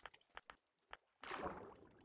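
A bright magical whoosh and chime sounds.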